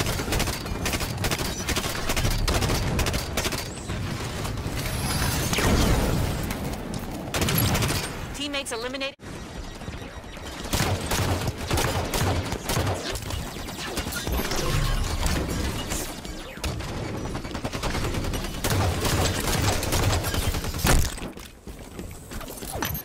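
Gunfire from a video game rattles in rapid bursts.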